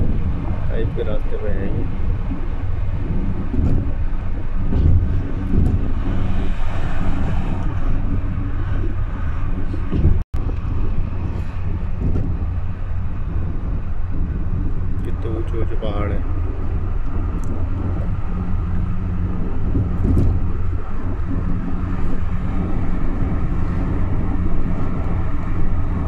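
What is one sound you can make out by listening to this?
A car's engine and tyres rumble steadily on the road from inside the car.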